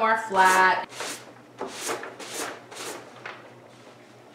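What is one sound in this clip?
A wet sponge dabs repeatedly on paper.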